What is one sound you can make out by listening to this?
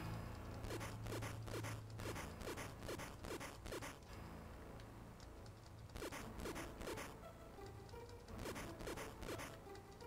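Short rising chirps from a video game repeat quickly.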